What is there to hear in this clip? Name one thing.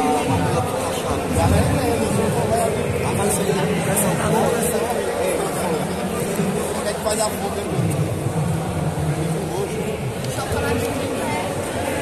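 Men shout and talk in a large echoing hall.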